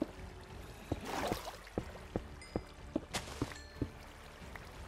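Footsteps tap quickly on hard stone.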